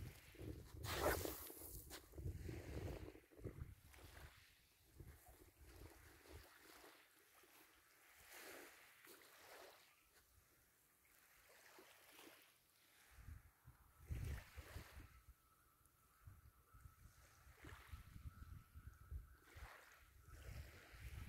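Small waves lap gently on a pebble beach.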